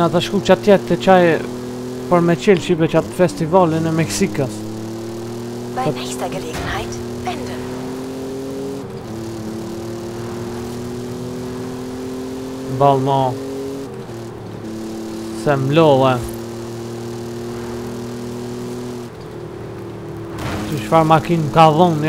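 A car engine hums steadily, shifting gears as it speeds along.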